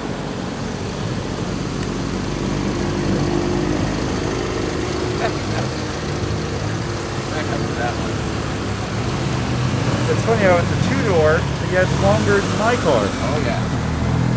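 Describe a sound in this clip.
Car engines rumble as cars roll slowly past close by.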